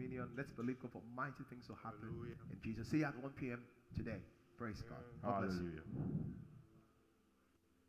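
A man speaks with animation into a close microphone.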